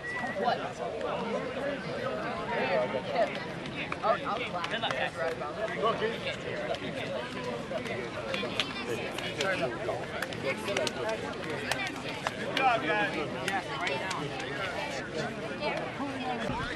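Hands slap together as players shake hands.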